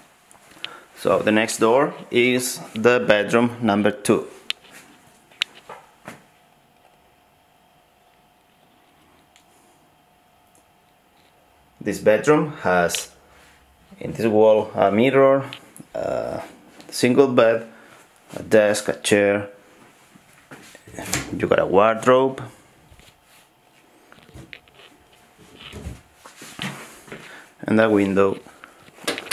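A man speaks close by, calmly and in short bursts with pauses.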